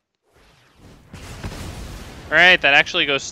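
A magical spell bursts with a crackling whoosh.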